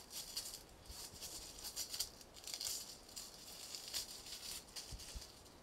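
Masking paper rustles and crackles close by.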